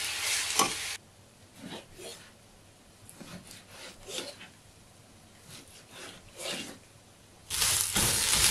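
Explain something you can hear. A knife cuts through raw meat on a board with soft taps.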